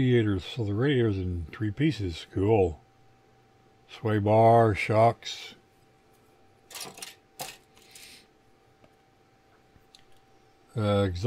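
Plastic model parts rattle and click as they are handled.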